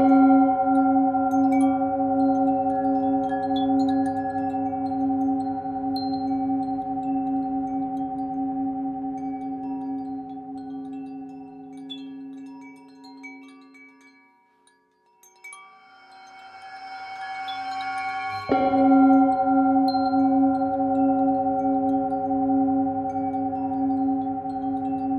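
A singing bowl rings with a deep, wavering hum that fades away and then swells again.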